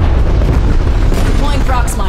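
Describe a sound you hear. Large explosions boom.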